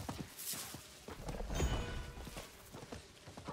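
Game combat effects clash and burst loudly.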